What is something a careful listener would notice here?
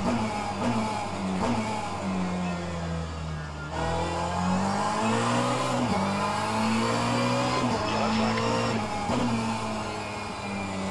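A racing car engine revs up and drops in pitch with each gear change, heard through loudspeakers.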